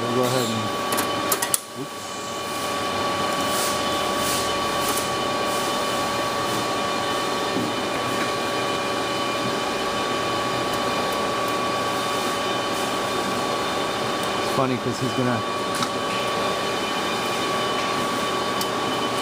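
A screwdriver clicks and scrapes against metal screws.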